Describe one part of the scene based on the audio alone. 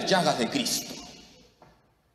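A man speaks through a microphone in an echoing hall, then falls silent.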